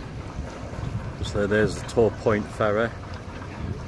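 Small waves lap gently against a harbour wall.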